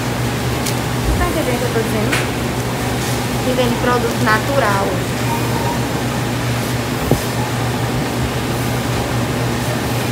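Refrigerators hum steadily.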